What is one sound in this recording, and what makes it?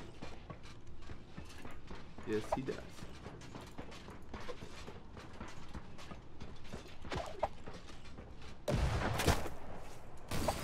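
A man talks into a microphone, close by.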